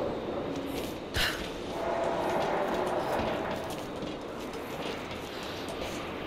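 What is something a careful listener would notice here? Boots clank on the metal rungs of a ladder.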